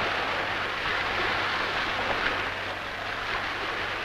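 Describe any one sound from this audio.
Oars splash in choppy water.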